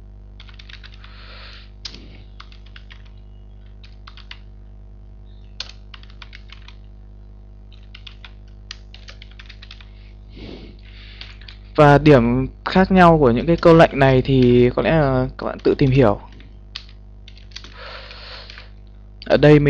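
Keys clatter on a keyboard in quick bursts of typing.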